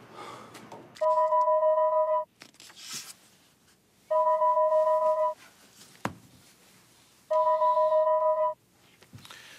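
A phone's ringing tone sounds in short, evenly repeated bursts.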